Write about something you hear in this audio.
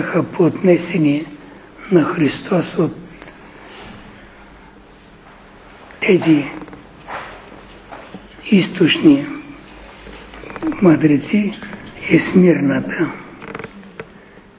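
An elderly man speaks slowly and earnestly in bursts, in a room with a slight echo.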